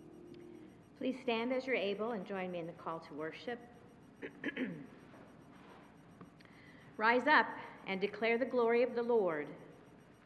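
A woman speaks calmly through a microphone in an echoing hall.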